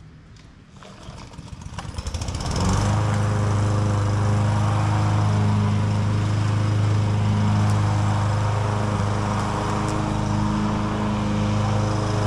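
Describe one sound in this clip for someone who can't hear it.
A lawn mower engine starts up and then runs loudly and steadily.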